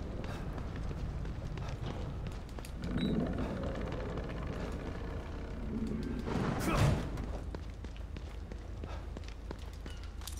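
Footsteps run quickly across a hard floor.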